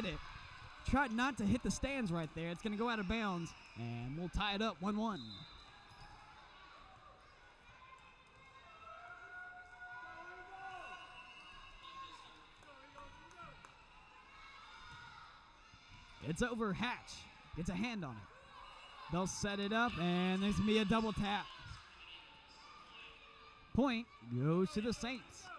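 Young women shout calls across an echoing gym.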